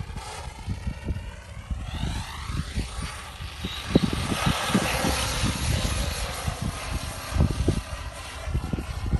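Wind buffets and rumbles outdoors.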